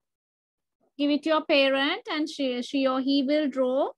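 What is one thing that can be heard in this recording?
A girl speaks with animation over an online call.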